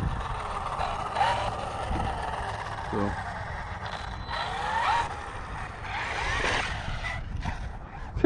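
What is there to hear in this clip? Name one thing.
An electric radio-controlled truck's motor whines as it speeds across asphalt.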